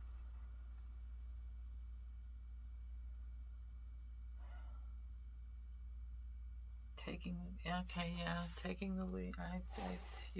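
Paper pages rustle as a book is handled and set down.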